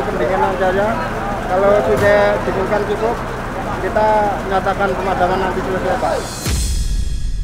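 A middle-aged man speaks calmly into a two-way radio close by.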